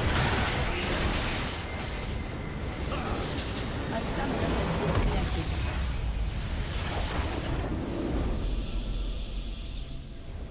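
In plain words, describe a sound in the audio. Spells and explosions crash and boom in a loud game battle.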